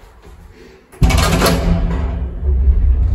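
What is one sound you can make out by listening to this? Sliding lift doors clatter shut.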